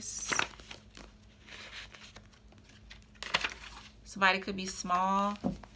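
Playing cards flick and shuffle in hands.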